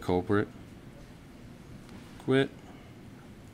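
A man speaks briefly into a microphone in a large room.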